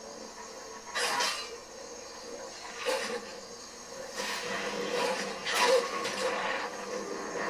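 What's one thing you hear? A wolf snarls and growls through a television speaker.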